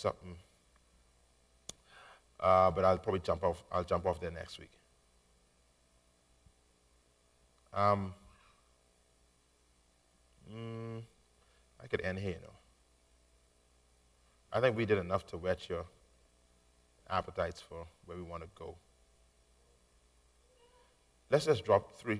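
A man preaches into a microphone in bursts, with long pauses.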